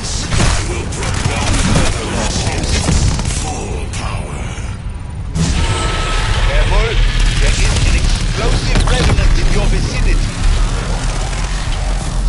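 Monsters growl and snarl close by.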